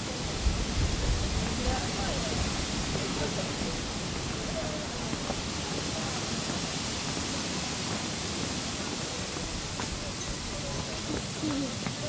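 Voices of people chatter in the distance outdoors.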